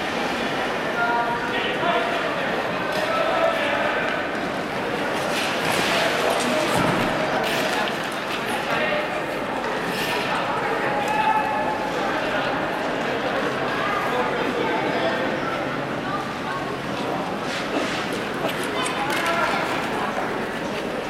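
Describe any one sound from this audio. A crowd of spectators chatters in an echoing rink.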